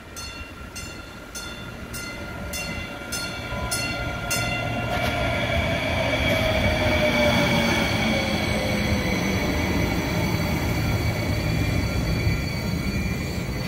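A light rail train rolls in over the tracks and slows to a stop.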